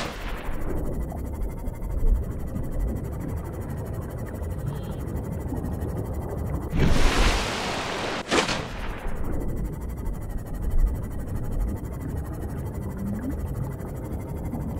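A small underwater craft hums with a low, steady rumble.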